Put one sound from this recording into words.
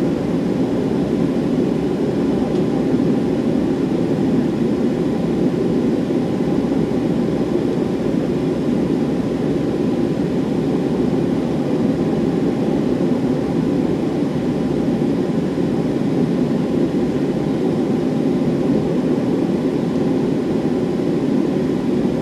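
Tyres rumble over the runway.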